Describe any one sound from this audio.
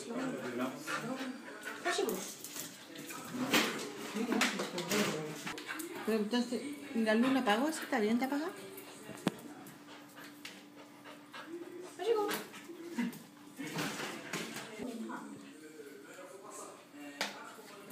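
A dog's claws patter and click on a hard floor.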